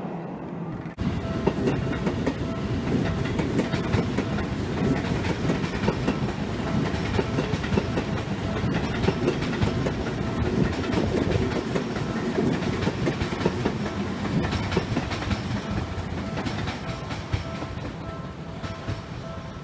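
A train rumbles and clatters past on the tracks.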